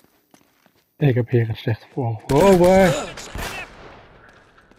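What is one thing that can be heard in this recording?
Pistol shots ring out in an echoing stone passage.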